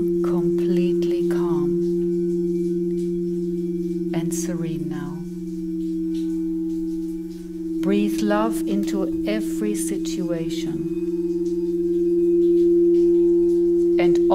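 Singing bowls ring with a steady, humming drone.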